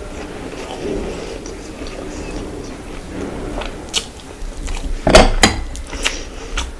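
Fingers squelch and crunch through food close to a microphone.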